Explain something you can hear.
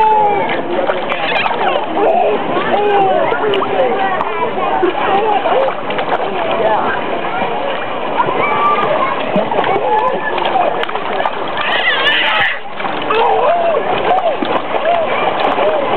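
A baby squeals and laughs close by.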